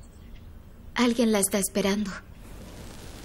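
A young woman speaks briefly and urgently nearby.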